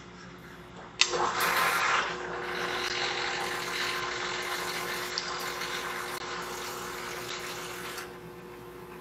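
Air and fuel hiss and gurgle through a hose.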